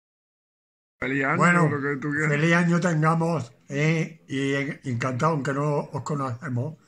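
An elderly man speaks with animation, close to a phone's microphone.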